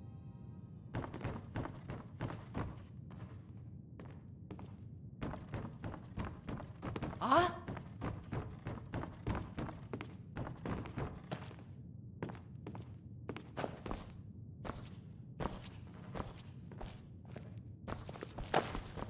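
Footsteps thud on wooden boards and stone floor.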